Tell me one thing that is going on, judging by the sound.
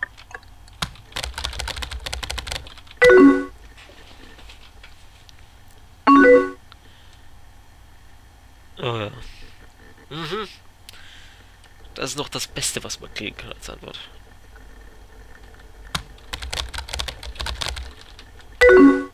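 Keyboard keys clatter in quick bursts of typing.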